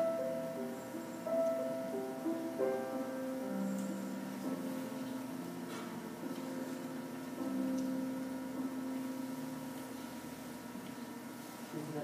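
A grand piano is played.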